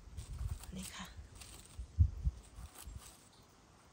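A knife cuts through a mushroom stem.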